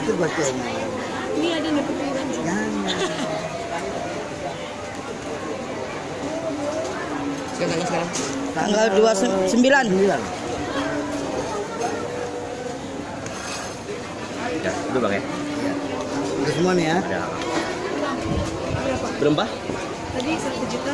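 A middle-aged man talks nearby, outdoors.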